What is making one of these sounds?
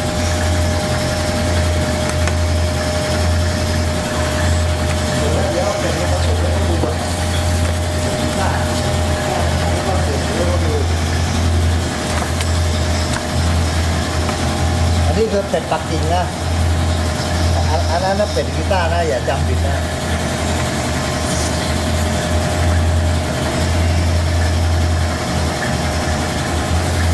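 A cleaver slices through raw meat on a wooden board.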